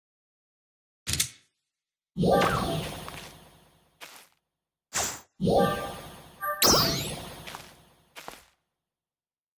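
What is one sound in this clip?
Short chimes and whooshes of a game's menu ring out as items are picked and placed.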